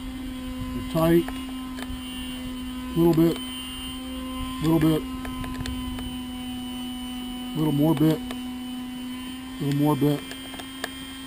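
A chainsaw's starter cord is pulled again and again, each pull giving a short whirring rasp.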